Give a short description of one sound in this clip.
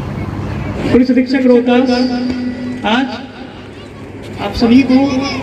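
A man speaks firmly into a microphone, heard through loudspeakers outdoors.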